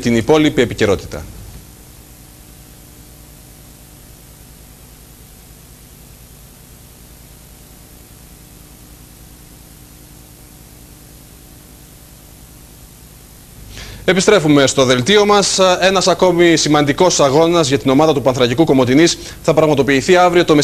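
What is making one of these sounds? A man speaks calmly and clearly into a microphone, close by.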